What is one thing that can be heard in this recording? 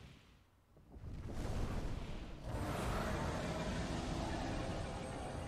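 A magical whoosh rushes and swirls.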